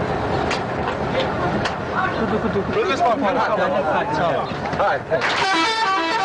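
A man speaks loudly and with emotion close by.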